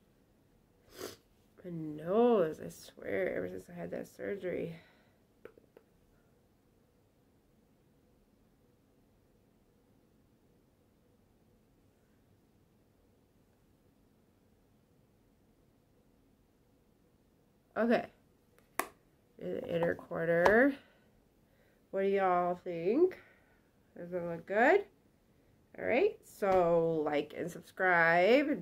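A woman talks calmly and close up, as if to a microphone.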